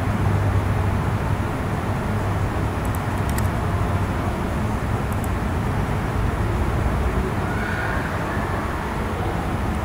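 A young woman speaks calmly into a nearby microphone.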